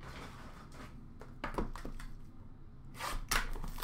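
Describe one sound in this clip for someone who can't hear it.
Hands shuffle and tap cardboard card packs in a box.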